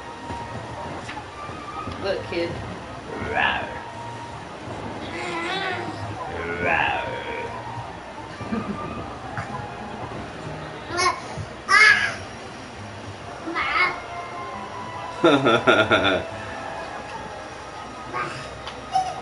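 A young child babbles and squeals.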